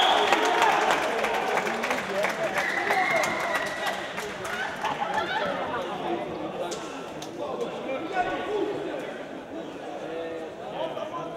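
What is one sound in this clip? Young men cheer and shout in a large echoing hall.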